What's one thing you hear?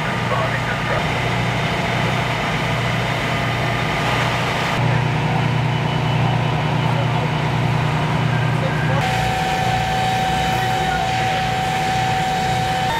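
A fire engine's diesel motor idles with a steady low rumble.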